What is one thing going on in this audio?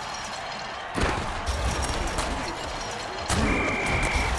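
A heavy tackle lands with a thud.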